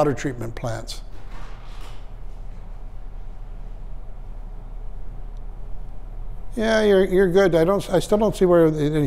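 A man speaks calmly to a small group in a room.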